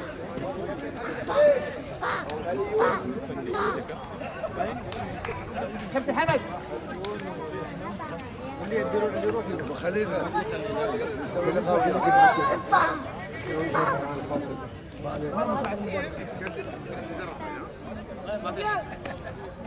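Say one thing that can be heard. A crowd of men chatter and talk over one another close by, outdoors.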